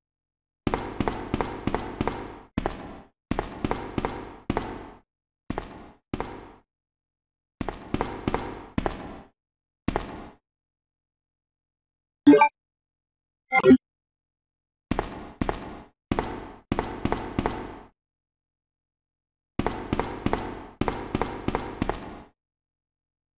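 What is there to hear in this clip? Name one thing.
Footsteps tread steadily on a hard floor.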